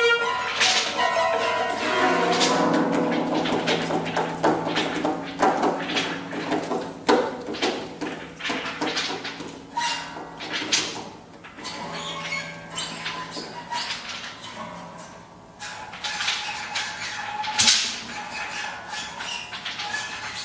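A small chamber ensemble plays music in a reverberant hall.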